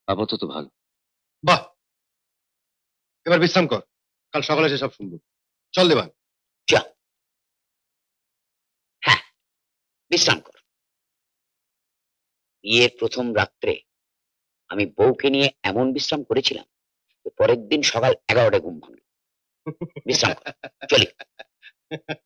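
A middle-aged man speaks with animation, close by.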